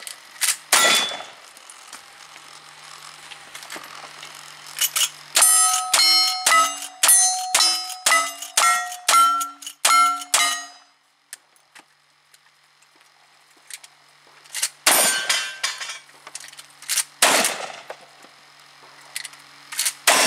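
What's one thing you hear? Gunshots crack loudly outdoors.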